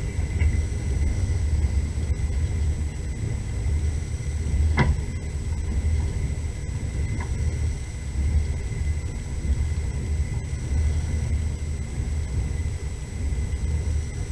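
A vehicle drives steadily along, its engine rumbling low.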